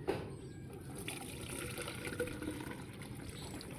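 Liquid pours and splashes into a strainer.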